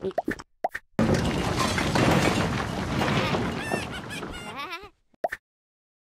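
A cartoon cat gulps a drink noisily.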